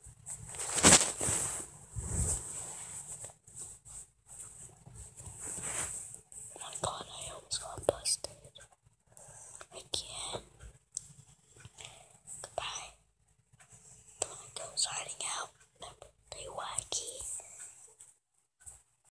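Fabric rustles and scrapes against the microphone.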